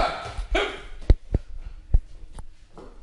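A rubber ball bounces and thuds on a hard floor.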